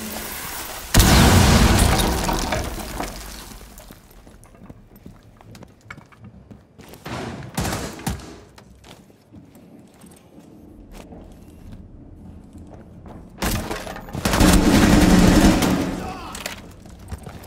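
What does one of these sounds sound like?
Rifle shots fire in loud bursts.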